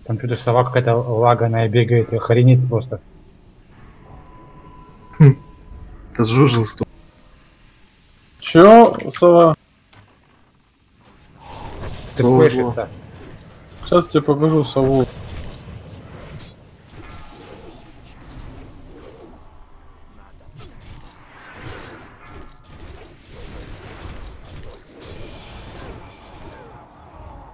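Game combat effects whoosh and crackle.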